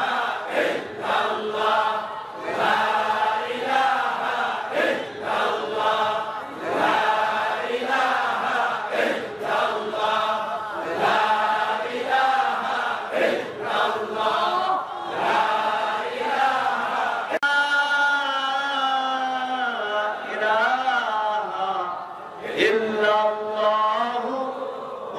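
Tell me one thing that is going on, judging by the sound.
A man preaches loudly and with fervour through a microphone and loudspeakers, his voice rising into a melodic chant.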